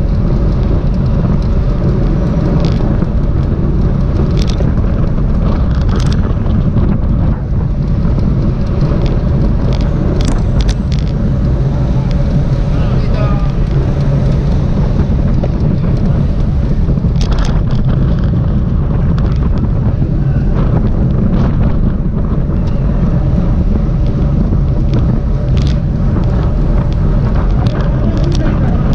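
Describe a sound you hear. Strong wind rushes and buffets loudly throughout.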